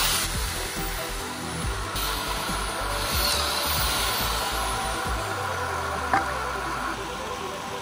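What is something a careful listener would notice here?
A power drill whirs.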